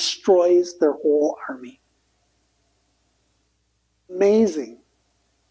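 An older man reads aloud slowly, with pauses.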